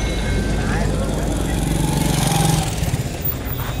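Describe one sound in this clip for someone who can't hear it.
A motorcycle engine passes close by.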